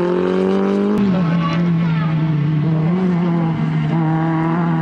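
A small hatchback rally car's engine revs hard as it drives by.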